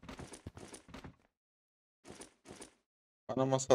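Cardboard boxes tumble and thud onto the ground.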